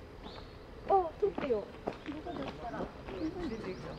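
A chimpanzee hoots softly nearby.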